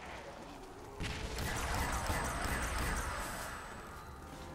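A ray gun fires rapid zapping blasts.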